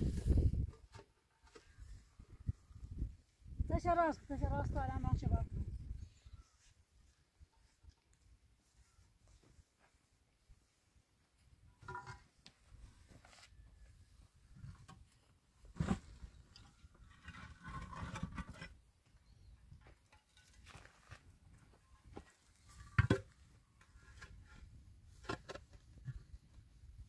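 Concrete blocks knock and scrape as they are set down.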